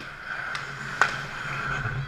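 A hockey stick clacks against a puck in an echoing indoor rink.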